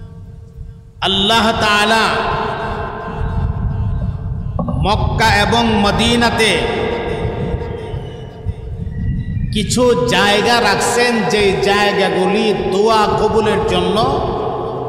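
A man preaches loudly and with fervour through a microphone, his voice echoing over a loudspeaker.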